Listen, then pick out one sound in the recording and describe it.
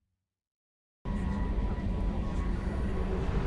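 A starship's engines hum steadily.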